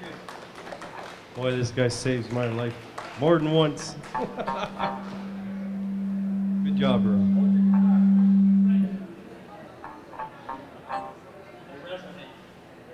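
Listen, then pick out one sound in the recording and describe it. Electric guitars play along.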